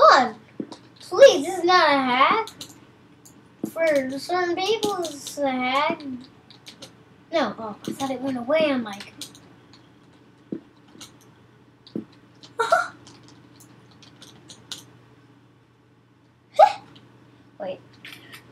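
A young boy talks excitedly, close to a microphone.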